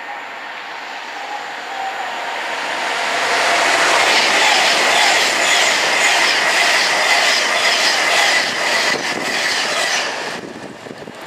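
A high-speed train roars past close by on the tracks.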